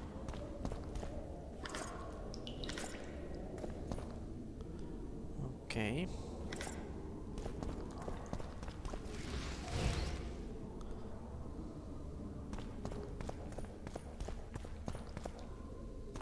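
Footsteps tread softly on a stone floor.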